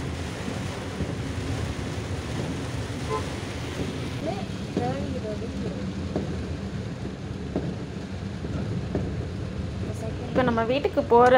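A car engine hums as it drives through water.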